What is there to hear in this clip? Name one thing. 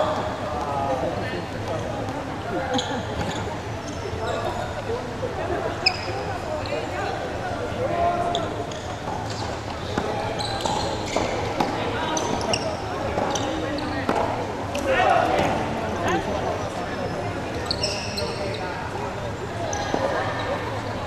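Paddles strike a ball with sharp pops.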